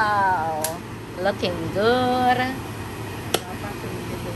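A plastic lid clicks shut.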